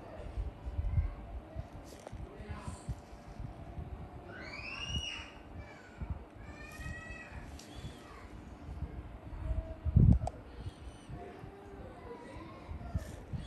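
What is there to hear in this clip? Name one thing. A metal tool scrapes softly against skin.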